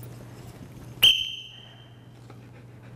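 A whistle blows a short, sharp blast.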